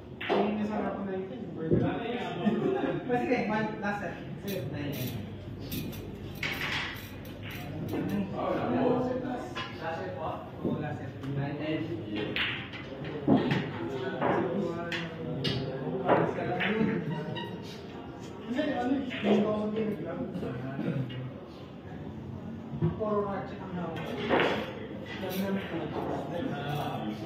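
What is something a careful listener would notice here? Billiard balls clack together.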